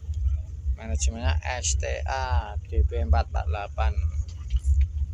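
A man speaks nearby in short phrases.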